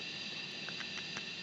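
A safe dial clicks as it turns.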